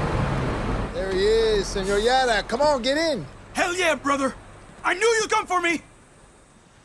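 A man calls out with animation, close by.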